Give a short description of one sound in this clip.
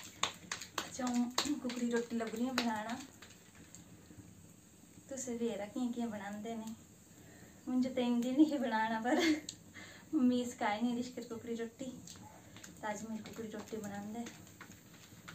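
A young woman speaks calmly and cheerfully, close by.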